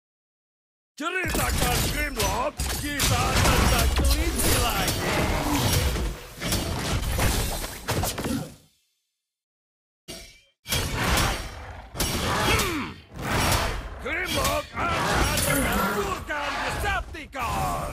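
Magical blasts and sword strikes from a video game whoosh and clash in quick bursts.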